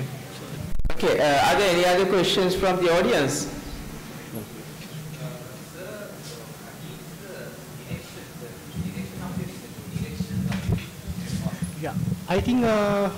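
A man speaks calmly into a microphone, heard through loudspeakers in a large room.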